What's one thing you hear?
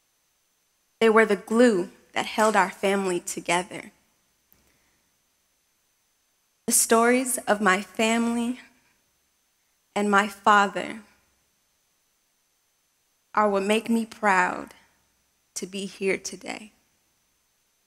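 A young woman speaks calmly through a microphone, with pauses, in a large hall.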